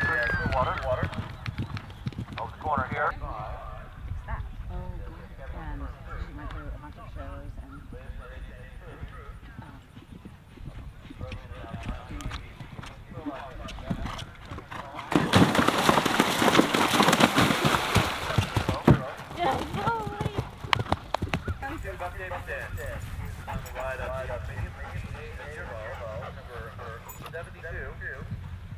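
A horse gallops over grass with thudding hoofbeats.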